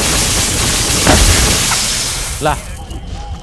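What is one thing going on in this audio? A blast booms and scatters debris.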